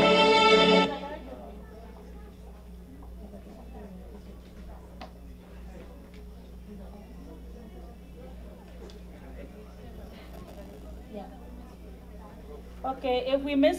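A crowd murmurs quietly in the background.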